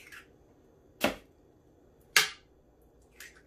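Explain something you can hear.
A plastic lid clicks and knocks onto a kitchen machine.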